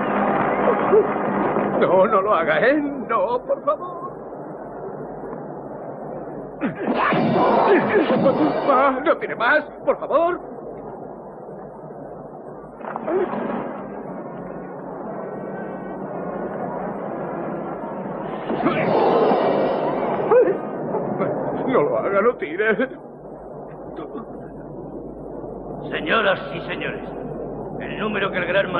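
A man speaks loudly with animation.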